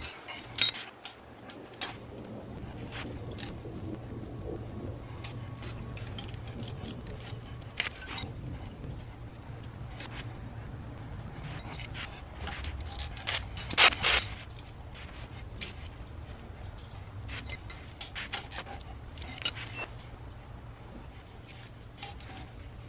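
Small metal parts click and clink close by.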